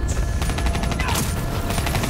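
A fiery explosion bursts with a loud boom.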